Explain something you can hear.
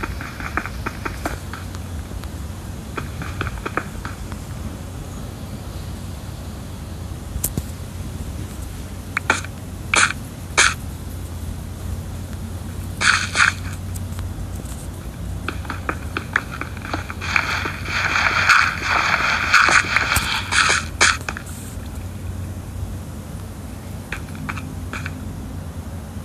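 A pickaxe chips at stone and dirt blocks in quick repeated taps.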